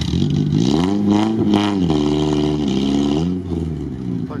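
An off-road vehicle's engine revs hard, rising and falling.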